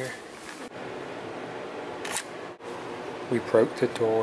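A key card slides into a door lock with a click.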